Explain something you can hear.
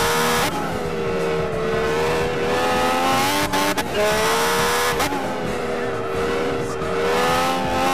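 A racing car engine screams at high revs, shifting gears as it speeds along.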